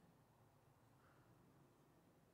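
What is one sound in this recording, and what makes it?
An eagle screeches.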